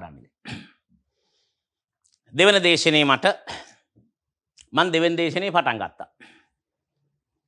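A middle-aged man speaks clearly into a microphone, in short phrases with pauses.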